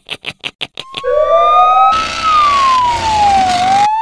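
A police siren wails.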